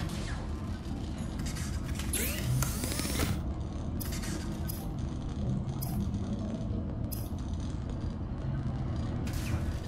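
Electrical sparks crackle and fizz.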